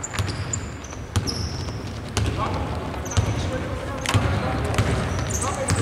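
A basketball bounces on a hardwood court in a large echoing hall.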